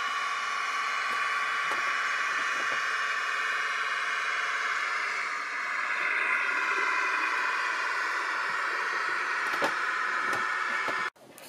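Model train wheels click over rail joints.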